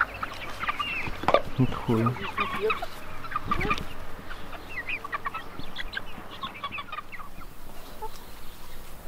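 A flock of hens clucks and chirps softly close by.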